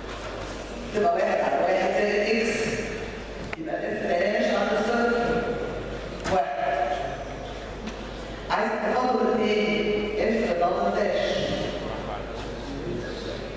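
A man speaks calmly, as if explaining.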